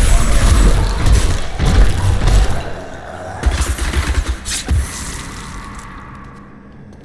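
Magical blasts crackle and boom in a loud fight.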